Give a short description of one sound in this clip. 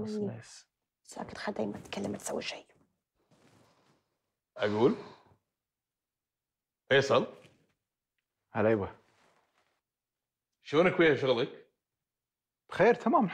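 A man speaks calmly nearby, in short bursts with pauses.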